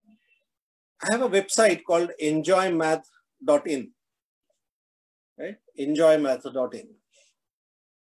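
An older man speaks calmly through an online call.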